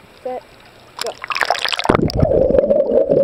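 Water splashes as someone plunges in.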